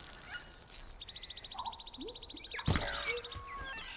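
A bowstring creaks taut and then snaps as an arrow is loosed.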